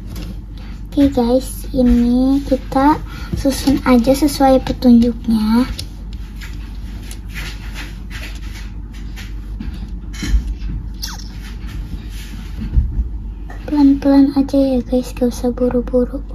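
A child speaks calmly close by.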